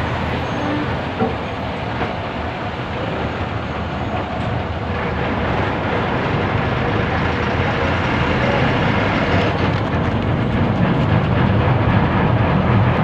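The bus body rattles and vibrates on the road.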